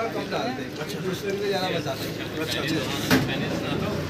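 A fork scrapes against a foil plate.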